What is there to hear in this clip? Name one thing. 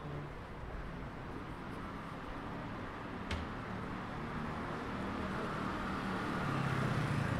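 A car engine hums as it rolls slowly along the street.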